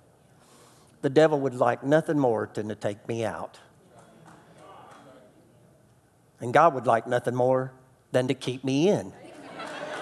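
A man speaks calmly and deliberately through a microphone in a large room.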